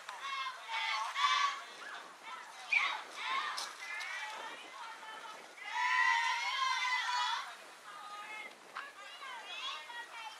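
Young girls shout and cheer in the open air.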